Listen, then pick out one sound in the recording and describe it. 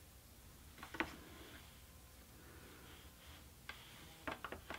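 A wooden loom knocks softly as yarn is beaten into place.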